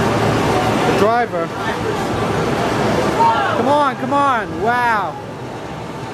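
Tyres screech from a racing game's speakers.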